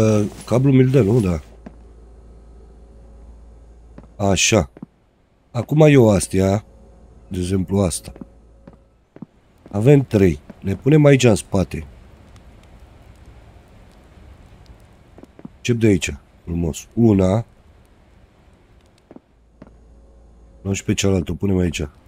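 A man talks with animation close to a microphone, in bursts with pauses.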